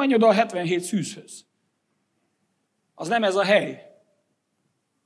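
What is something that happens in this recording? A middle-aged man speaks to an audience through a microphone in short bursts, with pauses between.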